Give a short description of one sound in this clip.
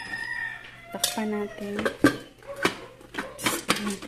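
A metal lid clinks onto a metal pot.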